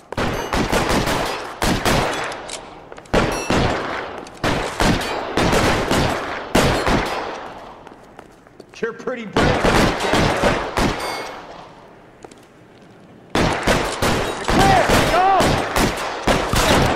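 Gunshots crack in rapid bursts, echoing through a large hall.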